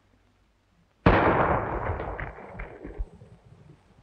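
A gunshot bangs loudly and echoes.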